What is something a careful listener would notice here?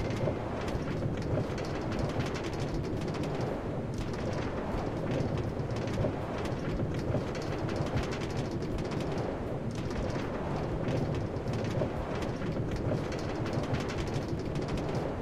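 A minecart rattles steadily along rails.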